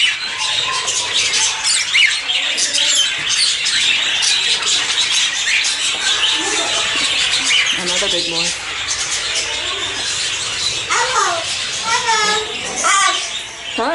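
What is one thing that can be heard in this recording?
Many small birds chirp and twitter busily nearby.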